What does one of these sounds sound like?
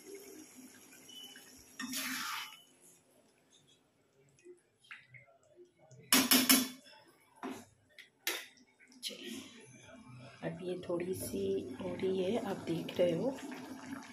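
A thick sauce bubbles gently in a pan.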